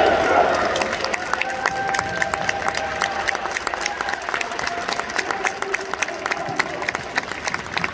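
A group of players claps hands in rhythm.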